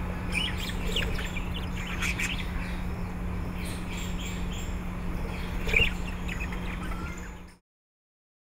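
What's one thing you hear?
Budgerigars chirp and chatter in quick high bursts.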